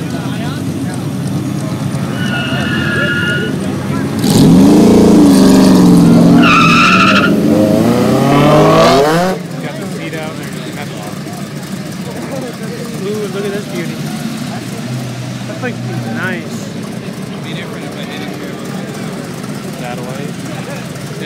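Car engines idle and rumble nearby.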